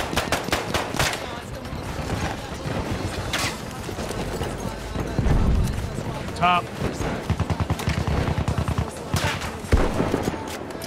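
Rapid gunfire cracks and echoes nearby.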